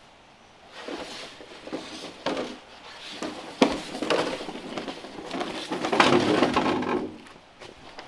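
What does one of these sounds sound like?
A bamboo pole scrapes along the ground as it is pulled.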